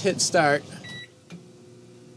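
A microwave button beeps once.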